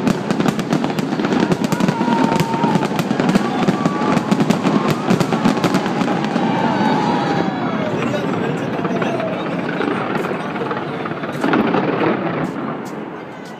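Fireworks crackle and bang rapidly, loud and close.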